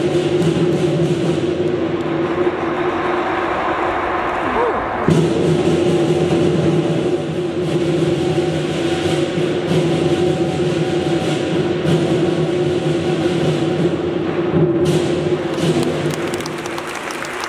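Drums and cymbals play a loud, steady beat.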